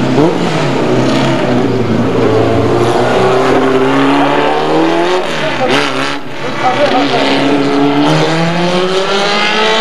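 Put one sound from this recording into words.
A racing car engine roars loudly, its pitch rising and falling as it revs through the gears.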